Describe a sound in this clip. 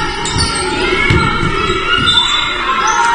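A basketball thuds as it is dribbled on the floor.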